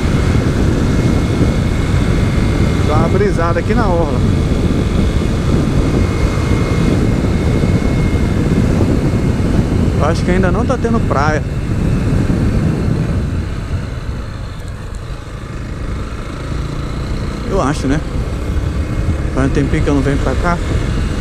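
Wind rumbles loudly against a moving motorcycle.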